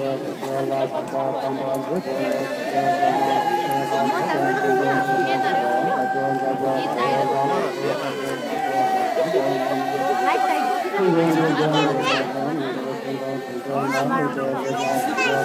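A large crowd of men and women sings together in a slow chant outdoors.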